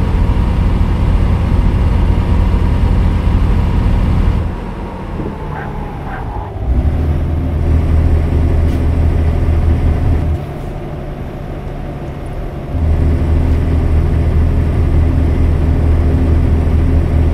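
A heavy truck engine drones steadily, dropping quieter at times as the throttle eases and then pulling hard again.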